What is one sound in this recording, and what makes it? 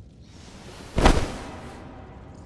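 A heavy body thuds to the ground.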